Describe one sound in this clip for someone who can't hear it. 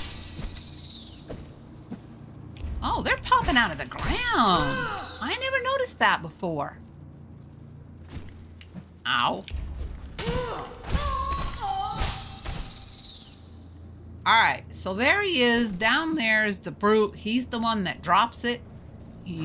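A blade swishes through the air and strikes.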